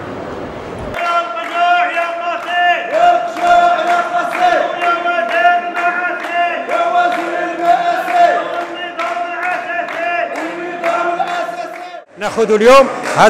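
A man leads a chant, shouting loudly in a large echoing hall.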